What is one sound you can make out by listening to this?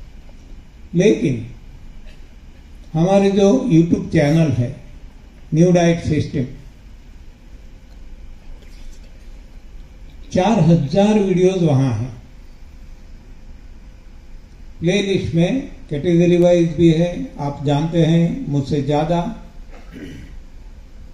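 An elderly man speaks slowly into a microphone, with long pauses.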